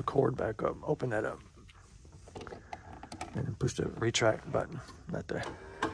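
A small hatch door clicks open.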